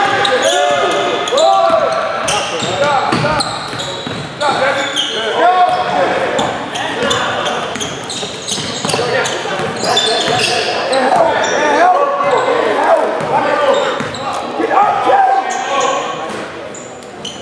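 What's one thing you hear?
Young players shout to each other across the court.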